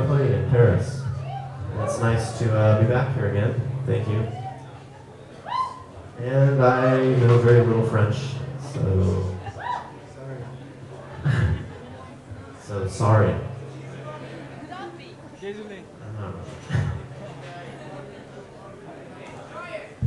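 An electric guitar plays.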